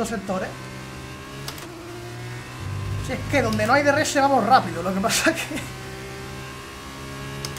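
A racing car engine drones steadily and shifts up in pitch.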